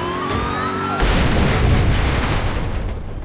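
A car crashes with a loud bang.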